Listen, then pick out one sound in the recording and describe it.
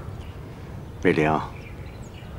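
An older man speaks softly and warmly.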